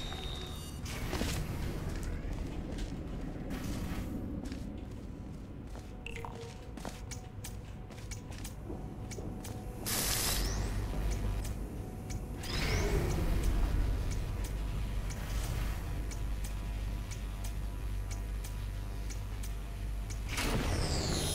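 A clock ticks steadily.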